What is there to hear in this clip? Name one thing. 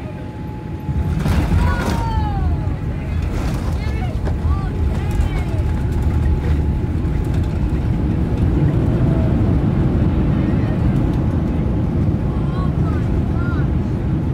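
Airliner wheels touch down with a sudden thump and rumble along the runway.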